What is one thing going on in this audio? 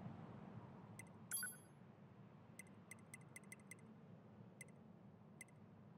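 Short electronic beeps click as a menu is browsed.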